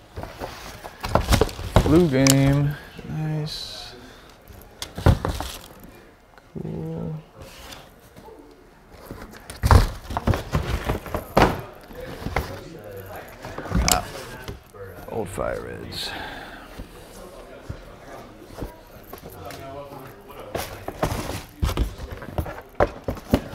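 Cardboard shoe boxes knock and thud as they are lifted and set down.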